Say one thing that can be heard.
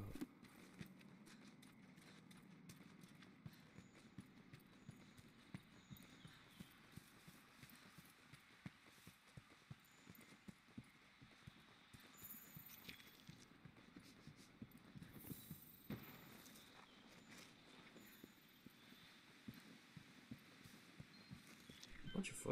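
Footsteps tread on soft ground at a steady walking pace.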